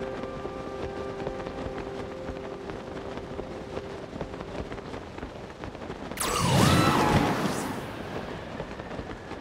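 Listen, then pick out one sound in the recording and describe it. Wind rushes steadily during a glide.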